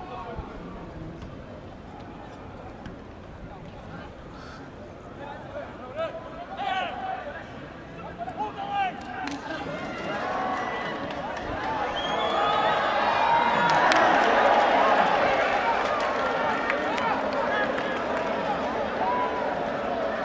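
Footballers shout and call to one another across an open outdoor pitch, louder as play nears the goal.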